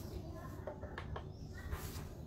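A small plastic cap clicks against a tiled floor.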